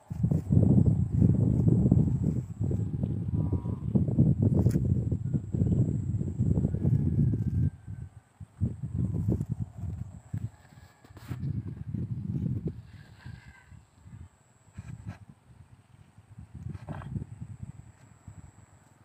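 A dog sniffs along the grass.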